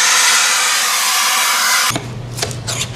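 Compressed air hisses loudly from a blow gun.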